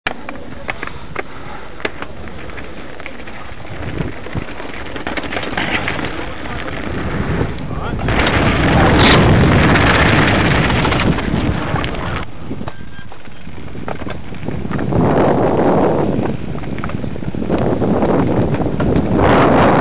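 Bicycle tyres roll and crunch over loose gravel.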